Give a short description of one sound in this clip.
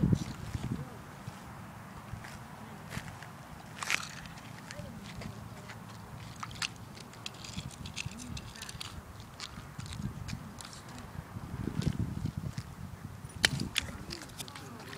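Rubber boots splash and slosh in a shallow puddle.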